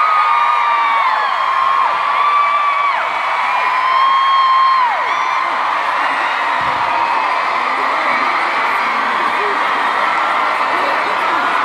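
A large crowd cheers and screams steadily in a huge echoing arena.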